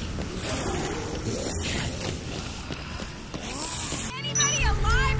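A crowd of zombies groans and moans.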